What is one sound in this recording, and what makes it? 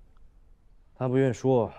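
A young man answers in a low, calm voice.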